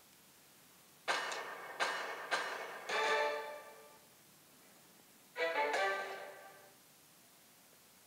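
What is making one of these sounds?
Bright chiming tones ring out one after another.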